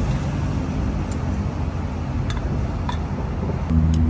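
A metal coffee pot lid clinks as it is opened.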